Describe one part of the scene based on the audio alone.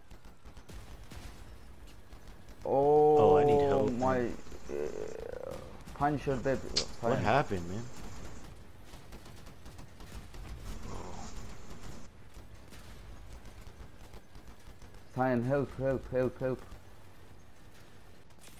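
Heavy guns fire and explosions boom.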